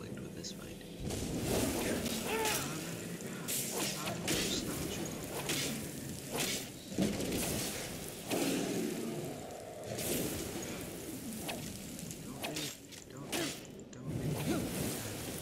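A dragon roars loudly.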